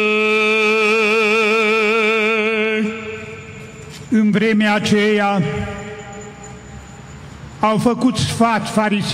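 A man chants a slow, wavering hymn through a loudspeaker outdoors.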